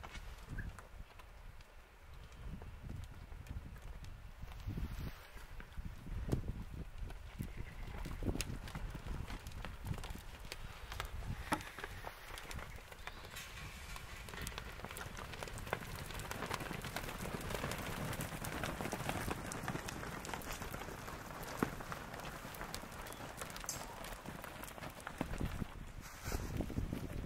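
Cattle hooves shuffle and thud on dirt ground.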